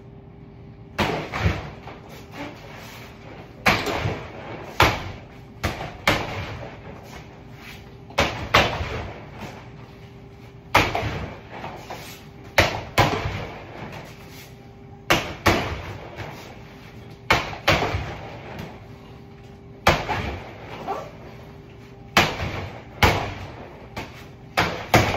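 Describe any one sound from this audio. Gloved punches thud heavily into a punching bag in quick bursts.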